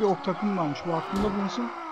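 Weapons clash in a distant battle.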